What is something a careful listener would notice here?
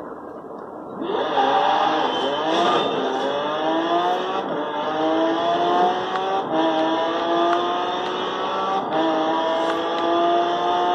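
A sports car engine roars through a loudspeaker, revving up through the gears.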